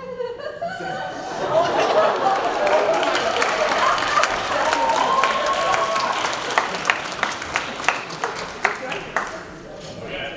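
An audience cheers and applauds loudly in a large hall.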